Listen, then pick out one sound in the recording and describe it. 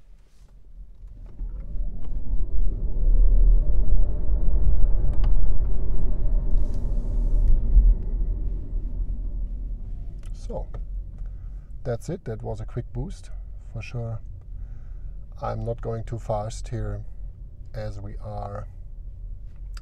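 A car speeds up, its low road rumble swelling and then easing off.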